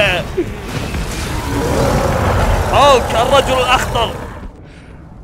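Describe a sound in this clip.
A man roars fiercely.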